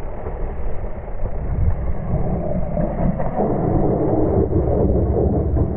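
Bicycle tyres rumble and crunch over a dirt trail.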